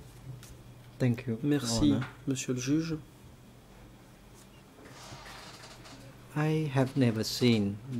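An elderly man reads aloud slowly into a microphone.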